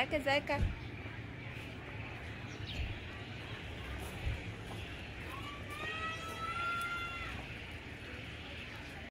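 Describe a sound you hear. Rabbits nibble and rustle in fresh grass.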